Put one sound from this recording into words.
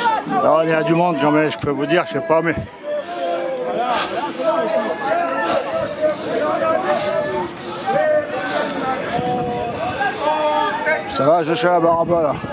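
A crowd of men and women chants loudly nearby, outdoors.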